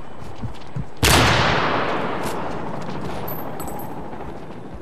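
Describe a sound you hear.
A sniper rifle fires a single loud shot that echoes away.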